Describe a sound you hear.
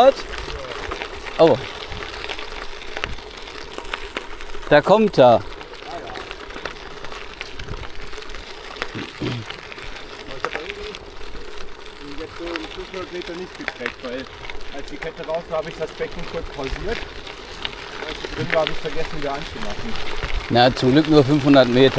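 Bicycle tyres crunch steadily over loose gravel.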